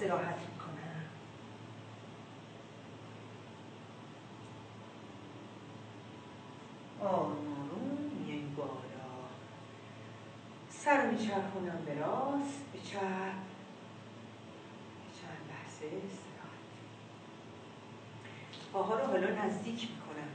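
An older woman speaks calmly nearby, pausing between phrases.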